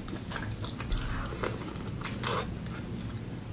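A young woman chews and slurps wetly close to a microphone.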